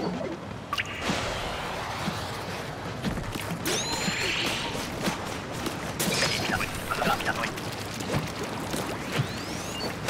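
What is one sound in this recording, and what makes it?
Wet paint splatters and splashes in short bursts.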